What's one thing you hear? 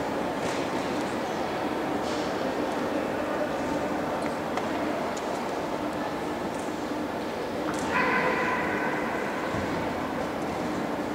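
A sparse crowd murmurs in a large echoing indoor hall.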